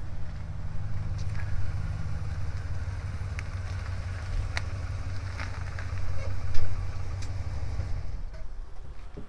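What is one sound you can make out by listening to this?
A vehicle engine idles nearby with a low rumble.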